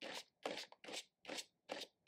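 A brush scrapes softly across paper.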